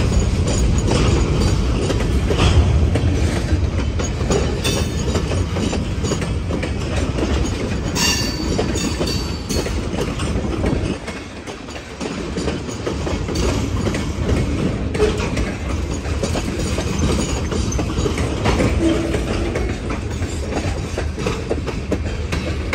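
A freight train rumbles and clatters steadily past close by.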